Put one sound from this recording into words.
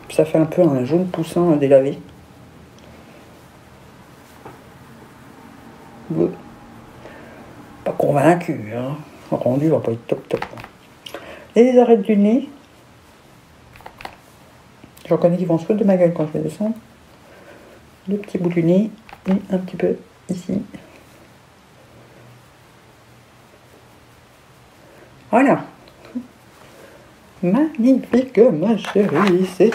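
A woman talks calmly and close to a microphone, in short bursts with pauses.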